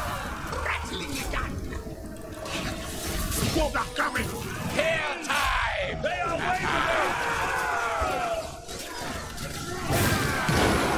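Weapons clash and clang in a large battle.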